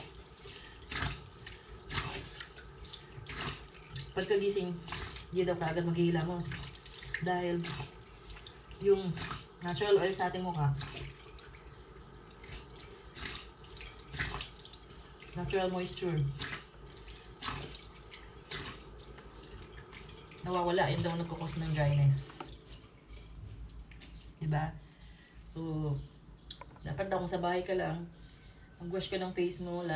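Water splashes as hands scoop it onto a face.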